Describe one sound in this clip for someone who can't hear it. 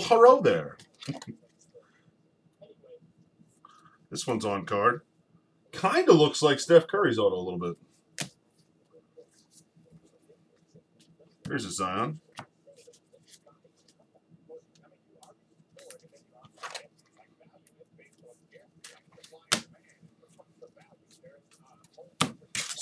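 Cards and plastic sleeves rustle and tap as they are handled.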